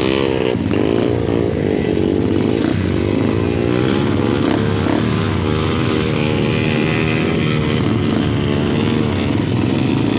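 A dirt bike engine idles and revs loudly close by.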